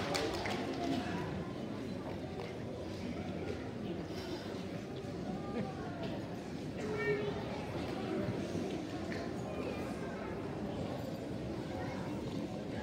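A crowd of children and adults chatter quietly in an echoing hall.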